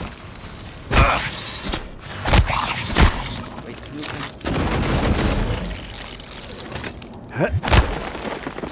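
Guns fire loud, sharp shots.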